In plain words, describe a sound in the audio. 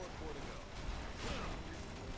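A large explosion booms and crackles.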